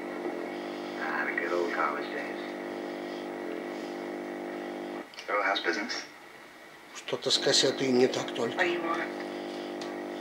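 A man speaks through a television loudspeaker.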